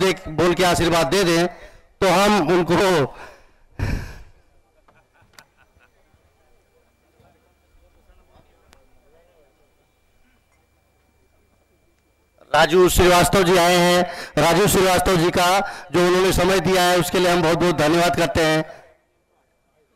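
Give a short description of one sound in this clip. An older man speaks forcefully into a microphone over a loudspeaker.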